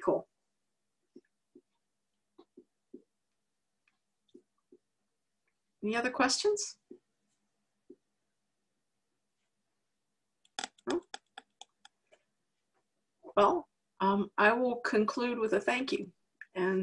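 A woman speaks calmly through an online call microphone, in short bursts with pauses.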